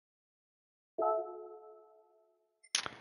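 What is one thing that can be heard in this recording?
A soft electronic chime rings once and fades.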